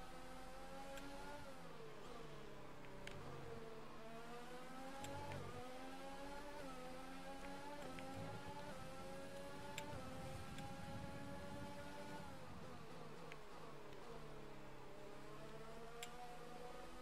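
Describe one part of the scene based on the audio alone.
Gears shift with sharp clicks.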